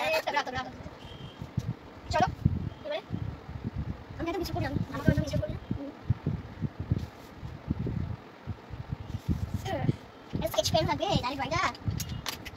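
Young children talk nearby.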